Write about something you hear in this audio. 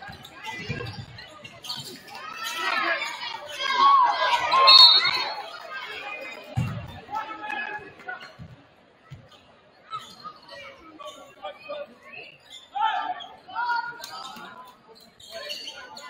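A crowd cheers and shouts loudly in a large echoing gym.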